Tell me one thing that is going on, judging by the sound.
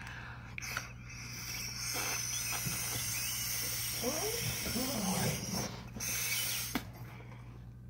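A woman blows air into a balloon.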